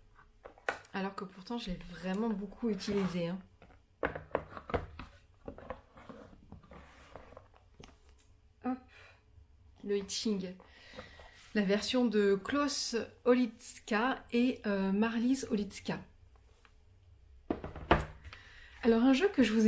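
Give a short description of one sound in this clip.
A young woman talks calmly and warmly, close to a microphone.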